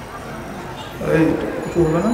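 A man speaks into a microphone through a loudspeaker.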